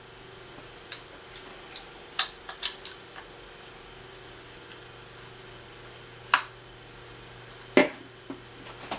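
Fingers click and fiddle with a plastic device.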